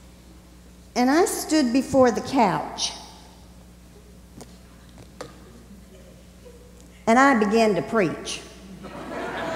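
An elderly man speaks calmly through a microphone in a large hall.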